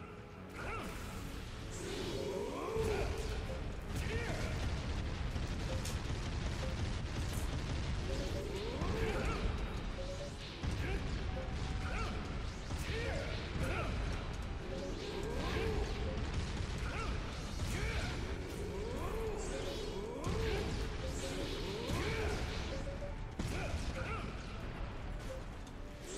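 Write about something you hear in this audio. Explosions boom and rumble again and again.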